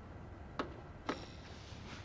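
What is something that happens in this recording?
A button on a disc player clicks.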